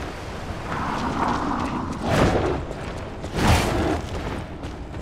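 A large creature lunges with a heavy whoosh.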